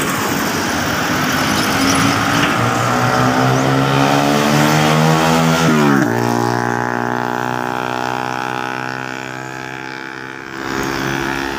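A heavy truck engine roars louder as it approaches, then drops in pitch as it passes close by.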